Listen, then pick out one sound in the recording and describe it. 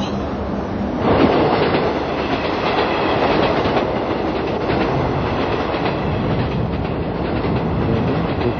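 A train rumbles loudly across a bridge overhead.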